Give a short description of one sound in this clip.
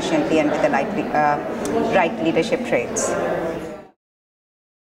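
A woman speaks calmly and clearly into a close microphone.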